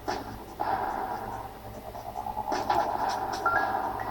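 Video game explosions crackle in short bursts.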